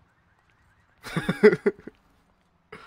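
A dog barks nearby.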